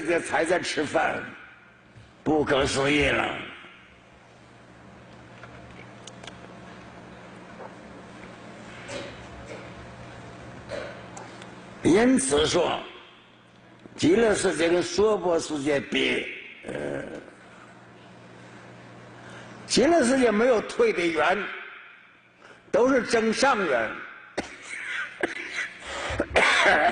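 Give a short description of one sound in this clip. An elderly man speaks slowly and calmly into a microphone, with pauses.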